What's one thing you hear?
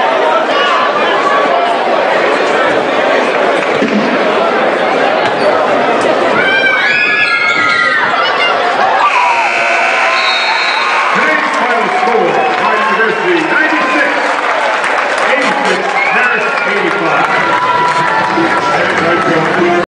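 A large crowd in an echoing arena cheers and shouts loudly.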